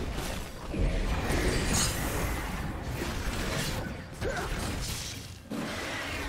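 Magic blasts whoosh and crackle in a busy fantasy battle.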